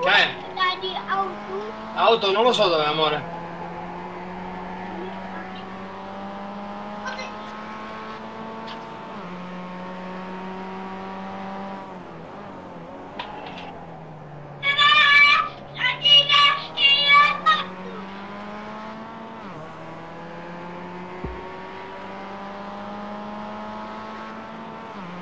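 A race car engine hums steadily, its pitch rising and falling with the gears.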